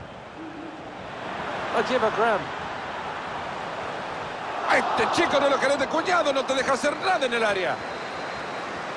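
A large crowd cheers in a stadium, swelling louder.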